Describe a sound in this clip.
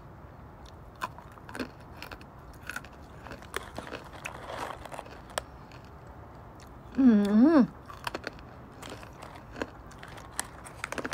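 A young woman crunches on a crisp snack.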